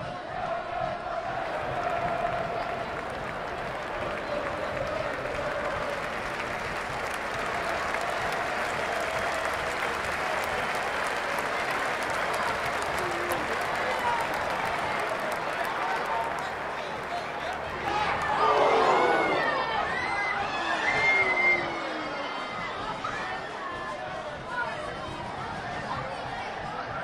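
A football thuds as children kick it.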